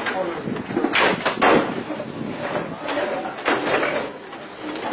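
Wooden furniture knocks against a truck bed.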